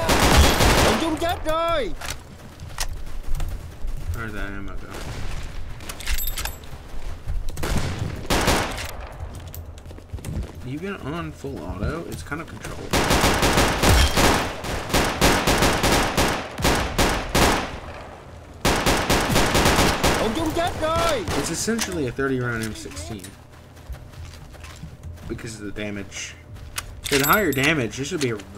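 A rifle fires in rapid bursts of loud shots.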